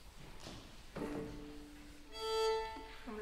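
A violin plays a few sustained notes.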